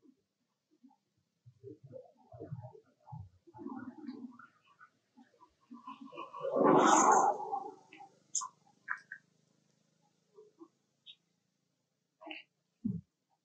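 Monkeys rustle softly as they groom each other's fur.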